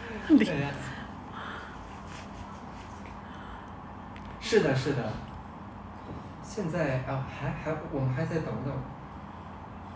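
A young man talks and laughs close by, with animation.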